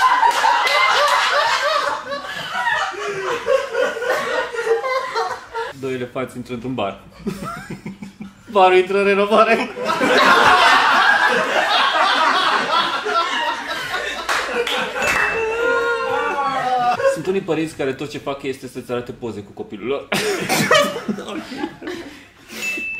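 Two men laugh heartily together close by.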